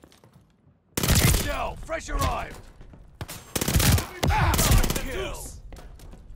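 A gun fires loud rapid bursts with echoing blasts.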